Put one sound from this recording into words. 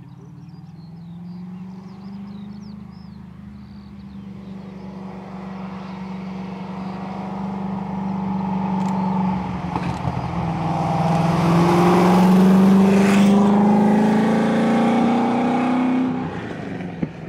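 A sports racing car engine roars as the car accelerates up the track and passes close by.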